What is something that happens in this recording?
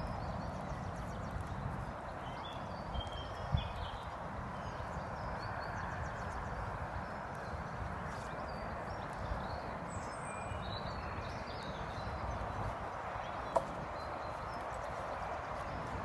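A horse's hooves thud softly on grass as it walks.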